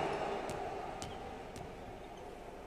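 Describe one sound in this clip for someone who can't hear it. A basketball bounces a few times on a hard court.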